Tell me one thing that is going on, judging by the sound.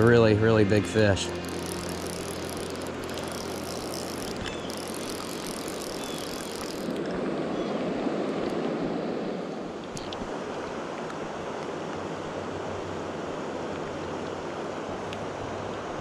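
Rain patters steadily on water outdoors.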